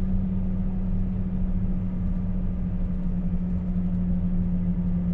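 Road noise rumbles low through the cab.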